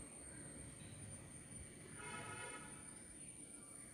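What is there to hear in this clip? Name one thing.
A metal spoon stirs a drink and clinks against a glass.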